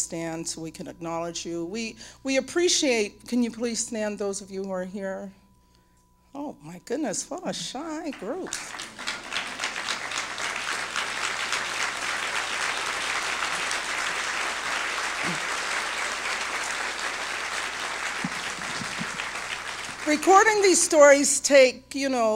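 A woman speaks with feeling into a microphone in a large hall.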